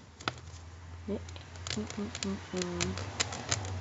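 A knife blade slits a plastic wrapper with crackling.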